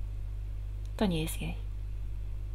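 A woman makes a short vocal sound over an online call.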